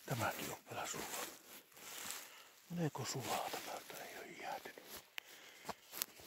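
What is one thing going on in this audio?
Footsteps crunch on snowy ground.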